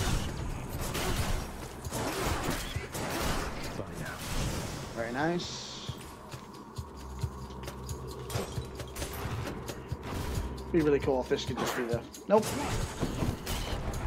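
Weapons clash and thud in a fight.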